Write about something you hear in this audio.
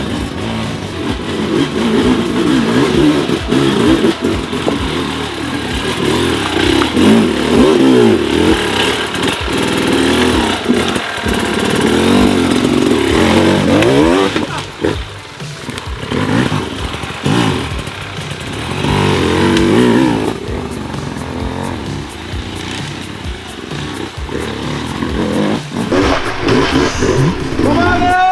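A dirt bike engine revs up and down, close by.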